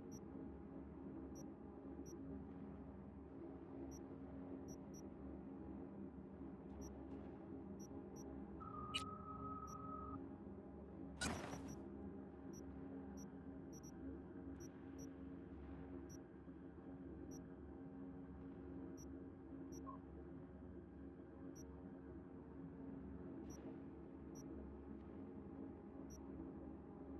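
Soft electronic menu clicks tick now and then as items are selected.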